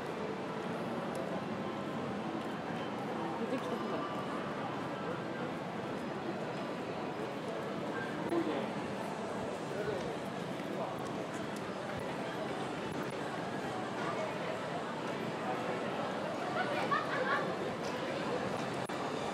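A crowd murmurs with indistinct voices nearby.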